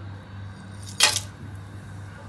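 Spices drop into a metal pan with a sharp clatter.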